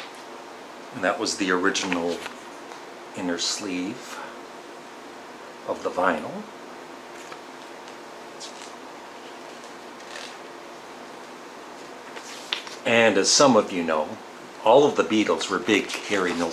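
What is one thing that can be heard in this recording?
A middle-aged man talks calmly and close by, in short bursts with pauses.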